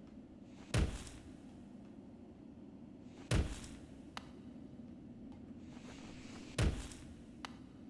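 Soft thuds sound as a small figure lands after jumps.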